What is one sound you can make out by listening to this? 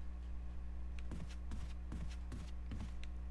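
Footsteps walk on a wooden floor.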